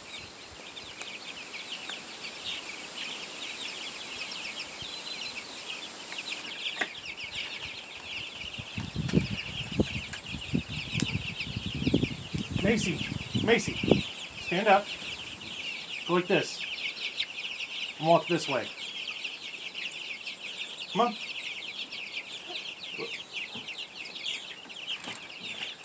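Many young chicks peep and cheep constantly.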